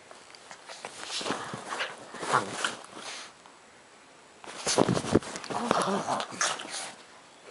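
A dog growls playfully.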